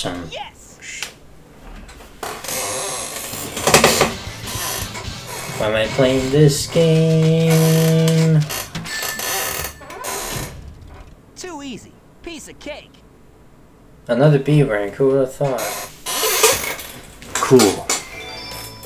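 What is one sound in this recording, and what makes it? Game music and jingles play.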